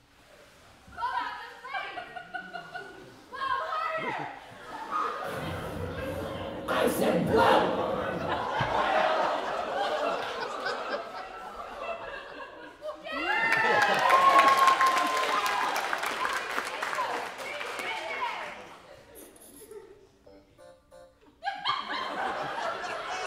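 Young performers speak on a stage, heard from across an echoing hall.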